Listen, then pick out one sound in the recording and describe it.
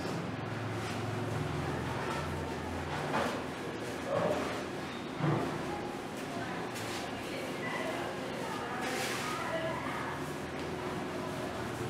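A cloth duster rubs across a chalkboard.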